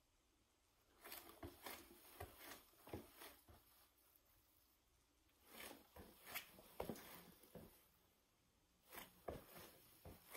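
Shoes step on a wooden floor.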